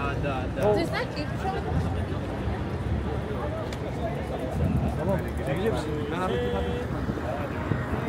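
Men and women chatter casually nearby.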